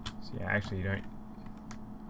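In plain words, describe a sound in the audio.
Footsteps clank on a metal ladder.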